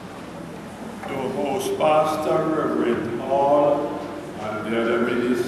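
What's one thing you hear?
An elderly man speaks calmly into a microphone over loudspeakers in an echoing hall.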